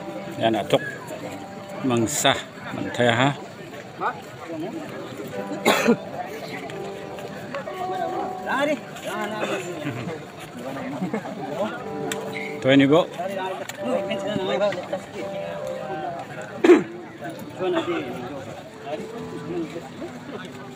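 Men talk and call out nearby, outdoors among a crowd.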